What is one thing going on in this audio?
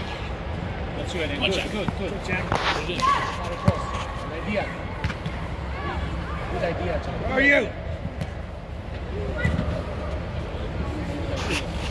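Children shout and call out during a game inside a large echoing dome.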